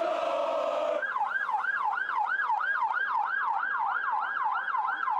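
A police siren wails, rising and falling quickly.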